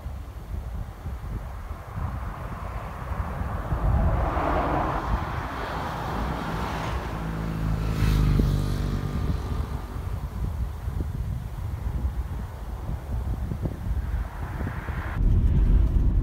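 Wind blows outdoors and rumbles against the microphone.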